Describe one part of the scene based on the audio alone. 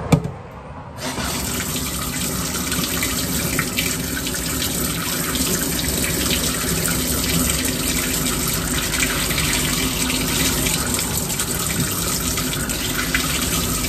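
Tap water runs steadily into a sink.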